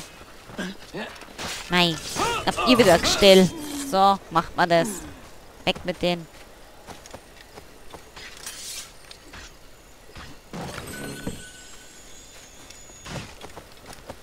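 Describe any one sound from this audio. Footsteps run over grass and wooden steps.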